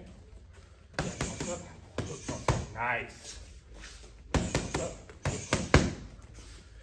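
Gloved punches smack sharply against a padded strike shield.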